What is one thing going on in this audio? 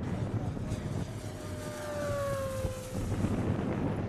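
A small model plane engine whines past overhead, its pitch falling as it goes by.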